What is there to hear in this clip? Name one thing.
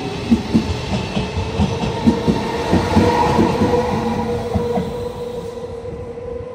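A train passes close by with loud rumbling and rhythmic clacking wheels.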